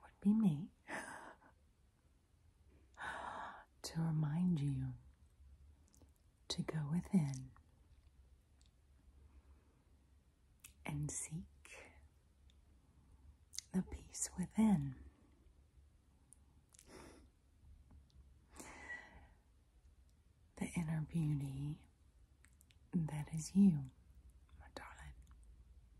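A woman speaks softly and closely into a microphone, in short bursts.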